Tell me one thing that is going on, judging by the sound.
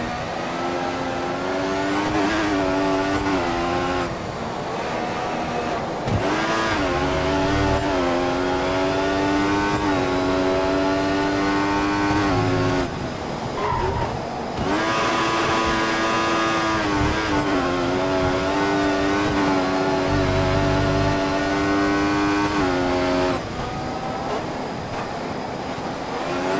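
A racing car engine screams as it climbs through the gears and drops on braking.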